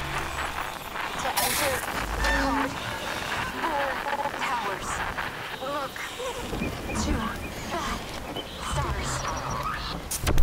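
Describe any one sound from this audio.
A handheld radio crackles with static.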